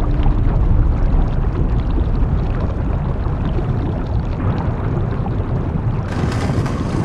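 A heavy lift rumbles steadily as it rises.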